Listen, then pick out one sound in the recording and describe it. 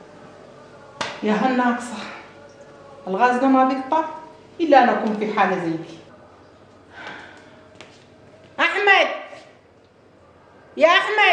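A middle-aged woman speaks calmly and close by, in short phrases with pauses.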